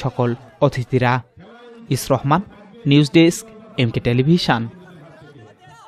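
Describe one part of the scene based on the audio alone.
A man speaks loudly and with animation through a microphone.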